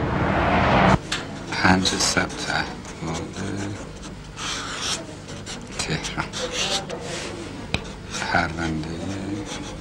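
A felt-tip marker scratches and squeaks on paper.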